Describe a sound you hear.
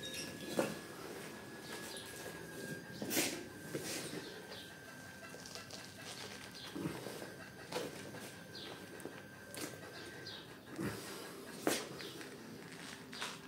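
Hands crumble and break apart dry clay with crisp cracking sounds.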